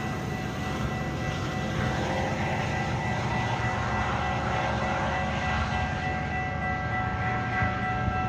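A diesel locomotive rumbles steadily as a train approaches.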